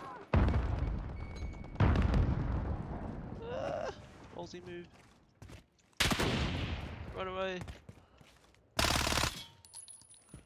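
A rifle fires loud single shots that ring out and echo.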